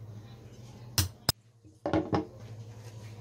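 A nail is knocked into wood with a few sharp taps.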